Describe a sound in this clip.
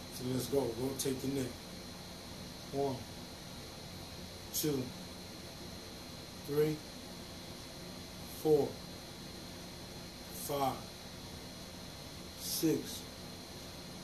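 A man says short words close by, one at a time with pauses between them.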